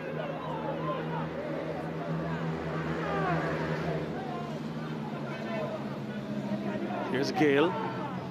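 A small crowd of spectators chatters and calls out outdoors.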